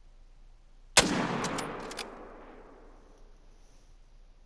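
A rifle fires a single loud shot that echoes and fades.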